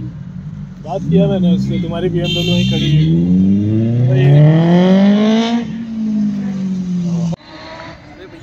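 A vehicle engine rises in pitch as it speeds up, then settles.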